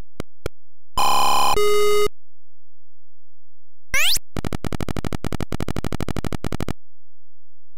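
A short electronic jingle plays as the level ends.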